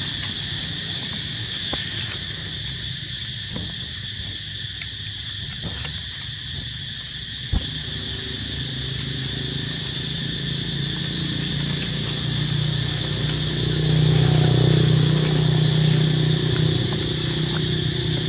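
Monkeys scuffle on dry ground and leaves.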